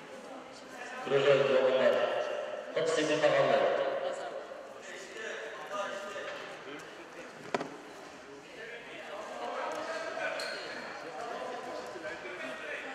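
Feet shuffle and scuff on a plastic-covered mat.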